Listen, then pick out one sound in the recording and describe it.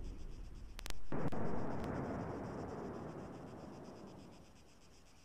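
A second blast bursts and fades.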